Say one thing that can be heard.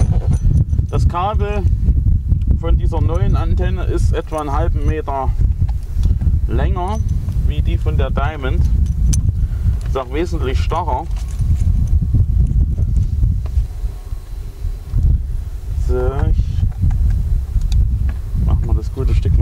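A metal cable plug is screwed onto a socket with faint scraping clicks.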